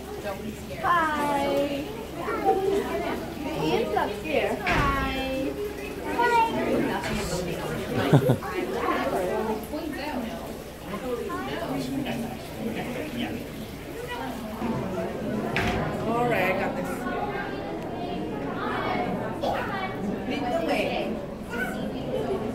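A young child speaks in a high voice close by.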